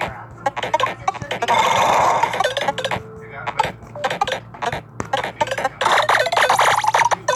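Electronic game sounds blip and chime in quick bursts.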